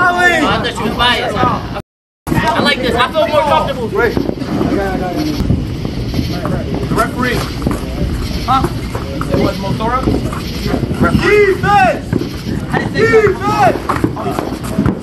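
Young men shout and argue loudly nearby in a large echoing hall.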